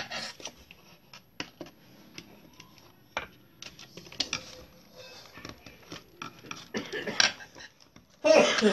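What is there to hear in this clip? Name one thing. A small metal tool clicks and scrapes against a circuit board.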